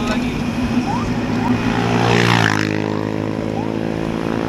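A motorbike engine passes close by and fades.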